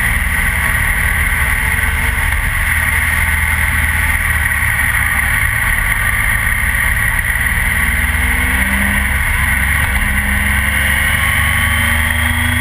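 Wind roars steadily over a helmet at speed.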